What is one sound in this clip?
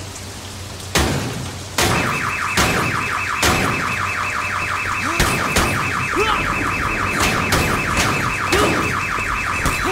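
A bat smashes against a car with loud bangs.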